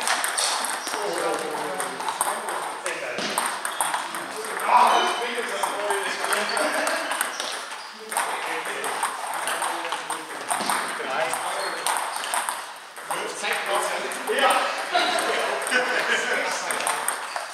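Men talk in the background of an echoing hall.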